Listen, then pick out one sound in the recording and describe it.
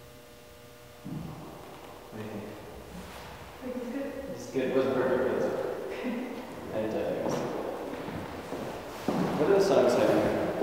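A young woman talks nearby in an echoing room.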